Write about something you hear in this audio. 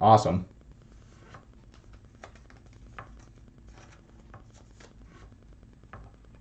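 Trading cards rustle and tap softly as they are handled.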